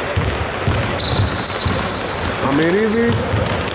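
Sneakers squeak on a hard court in a large echoing hall.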